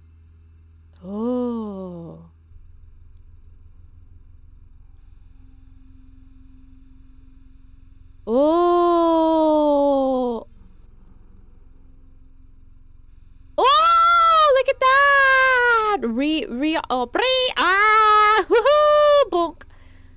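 A young woman speaks expressively into a close microphone, with long drawn-out exclamations.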